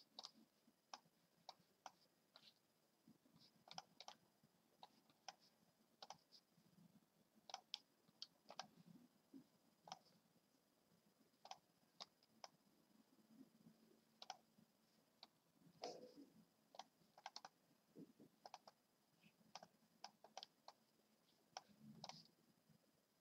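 Short sharp clicks sound again and again as chess pieces are moved.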